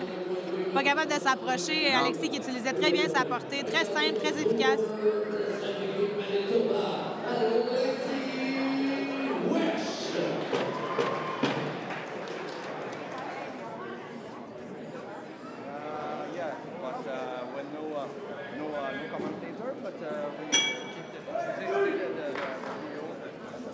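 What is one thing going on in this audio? Men talk and shout nearby in a large echoing hall.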